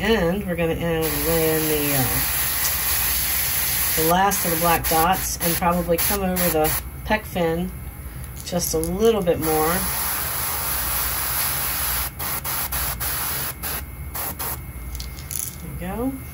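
An airbrush hisses as it sprays paint.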